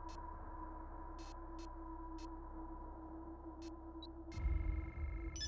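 Short electronic menu clicks sound a few times.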